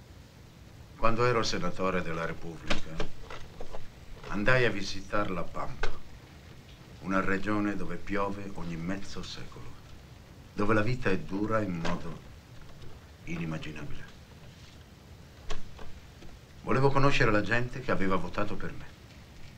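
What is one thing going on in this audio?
An older man talks calmly at length.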